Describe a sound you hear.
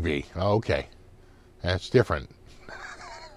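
A middle-aged man speaks close to a microphone with cheerful animation.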